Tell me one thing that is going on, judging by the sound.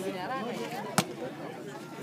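A basketball thuds once on the ground.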